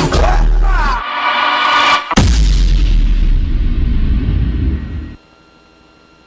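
Loud, thumping dance music plays over loudspeakers, then stops abruptly.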